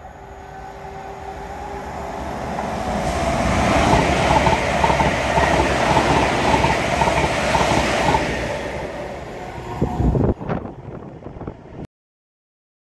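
A passenger train approaches, roars past close by and fades away.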